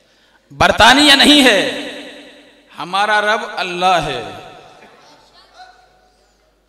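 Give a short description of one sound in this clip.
A man speaks forcefully into a microphone through loudspeakers, echoing in a large hall.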